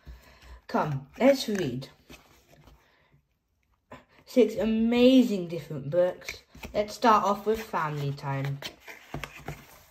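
A cardboard sleeve slides and rustles against a box.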